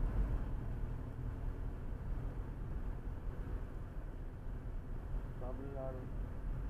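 Tyres roll steadily over a paved road.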